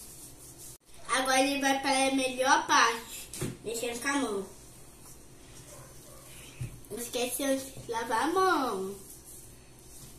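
A young child speaks with animation close by.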